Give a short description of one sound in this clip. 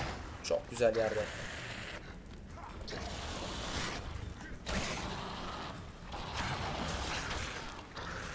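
Sword blows whoosh and strike in a fierce fight.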